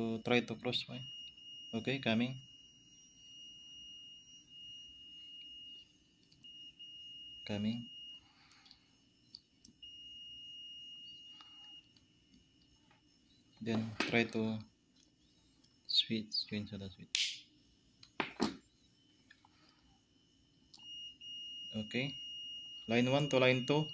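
A multimeter gives a steady high beep.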